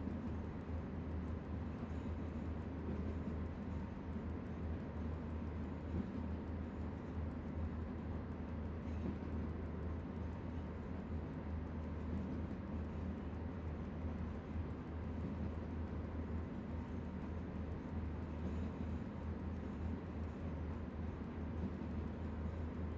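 An electric locomotive hums and rumbles steadily as it runs along the track.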